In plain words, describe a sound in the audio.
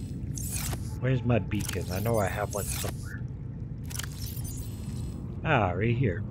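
A middle-aged man talks calmly into a close microphone.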